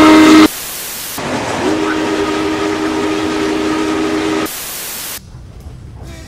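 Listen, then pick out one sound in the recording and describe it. Television static hisses loudly.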